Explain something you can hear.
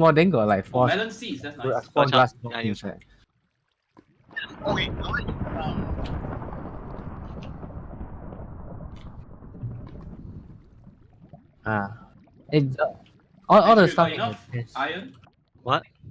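Lava bubbles and pops softly.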